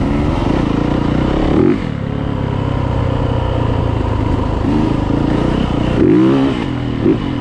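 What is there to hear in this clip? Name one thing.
A dirt bike engine roars close by, revving up and down.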